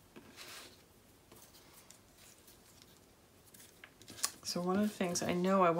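Paper rustles and crinkles softly as it is handled.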